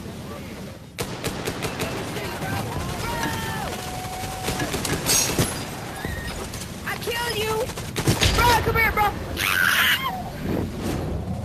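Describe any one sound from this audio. A rifle fires in rapid bursts of sharp shots.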